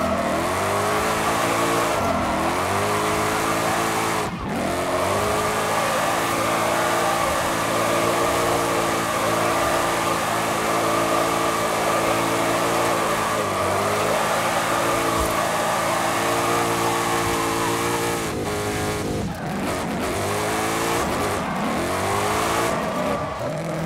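Tyres screech while a truck slides sideways.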